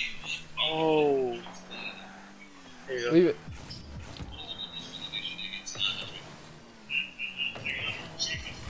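A car engine hums and roars with bursts of boost.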